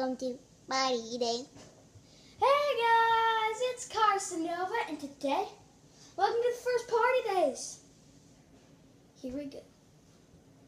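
A young boy talks with excitement close by, his voice rising and sometimes drawn out.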